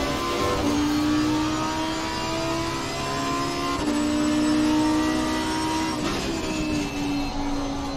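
A racing car engine roars at high revs, rising in pitch through each gear and dropping sharply at each gear change.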